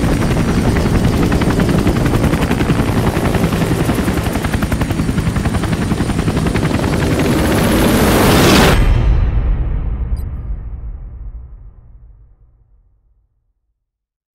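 Helicopter rotor blades thump loudly and fade away.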